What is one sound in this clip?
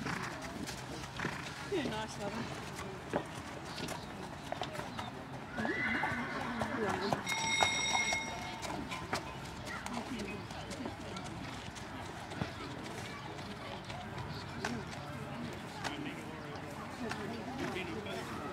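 A horse's hooves thud softly on grass as it canters.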